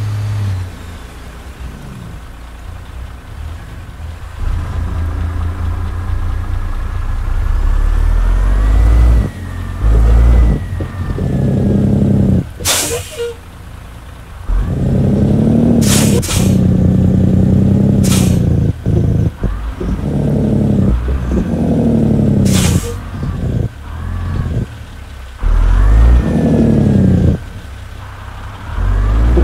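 A heavy truck engine rumbles and revs up and down.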